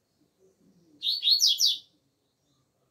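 A double-collared seedeater sings a short, fast burst of song.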